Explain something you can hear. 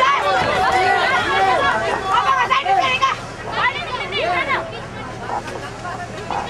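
A crowd cheers and shouts in an open space.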